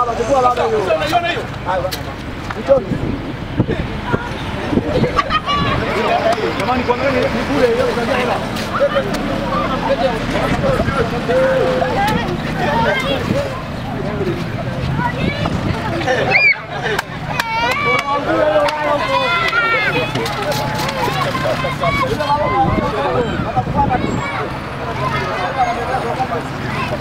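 A crowd of people chatters and calls out loudly outdoors.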